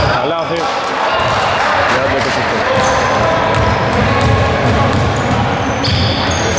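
A basketball bounces on a hardwood floor in an echoing hall.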